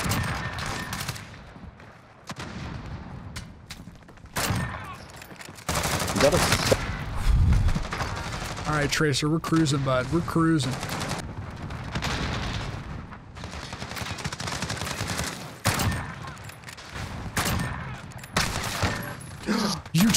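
Gunshots crack in a video game.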